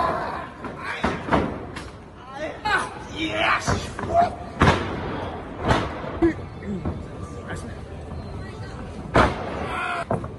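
Bodies slam onto a wrestling ring mat with loud thuds.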